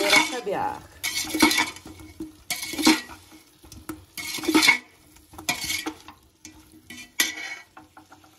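A metal spoon scrapes and clanks against the inside of a metal pot.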